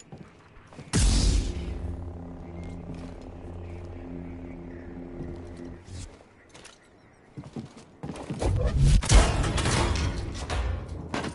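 A lightsaber ignites with a loud whoosh and hums steadily.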